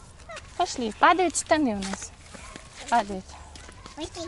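A little girl speaks and squeals in a high voice close by.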